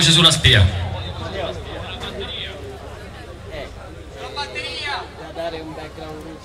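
A man speaks through loudspeakers.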